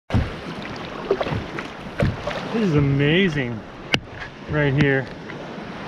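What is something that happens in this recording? Small waves lap and splash against a kayak outdoors.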